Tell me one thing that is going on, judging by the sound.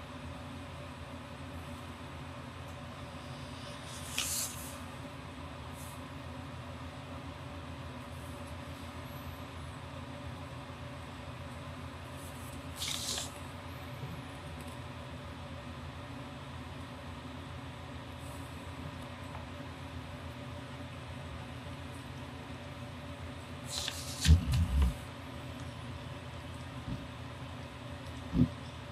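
A pen scratches lightly on paper.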